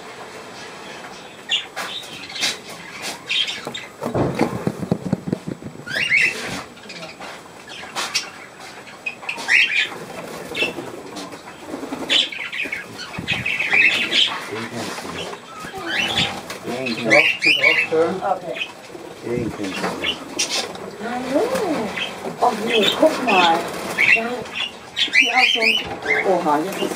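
Budgies chirp and twitter nearby.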